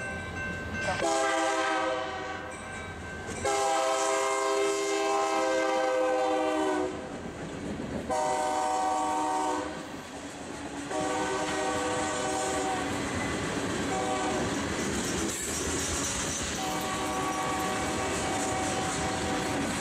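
A locomotive horn blows loud, long blasts close by.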